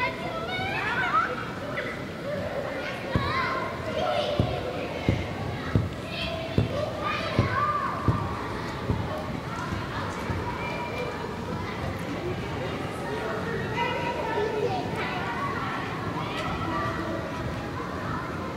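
Young women shout and call out to each other across a large echoing hall.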